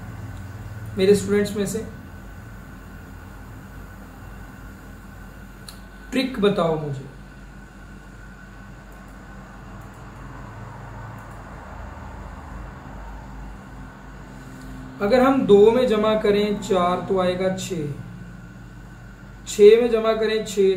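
A young man speaks calmly in short bursts, close to a microphone.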